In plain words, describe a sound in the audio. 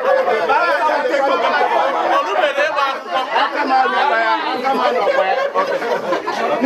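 A group of adult men and women sing together loudly close by.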